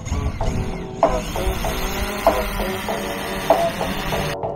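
The rotors of a quadcopter drone whine as it hovers overhead.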